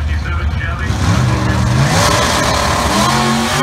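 A drag racing engine revs loudly, rising in pitch.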